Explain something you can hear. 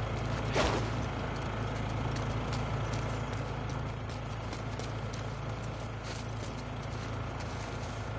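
Footsteps scuff on concrete as a person walks.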